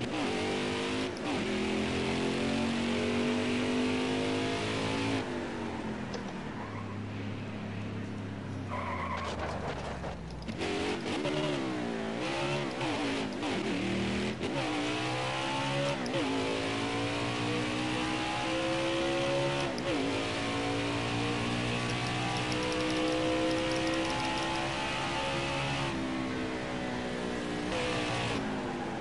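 A V8 stock car engine roars, revving up and down through gear changes.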